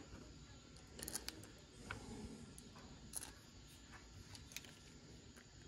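Small metal parts click and tap as fingers handle them.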